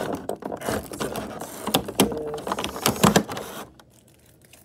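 Plastic wrapping crinkles close by.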